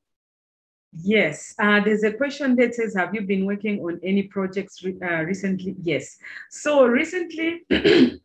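A young woman speaks calmly and warmly over an online call.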